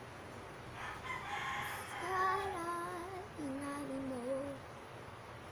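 A girl speaks briefly close by.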